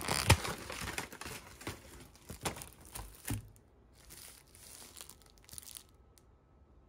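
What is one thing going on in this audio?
Plastic wrappers crinkle on a wooden table.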